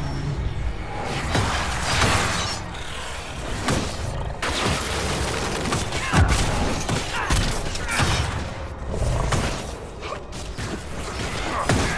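Swords clash and strike in a fast fight.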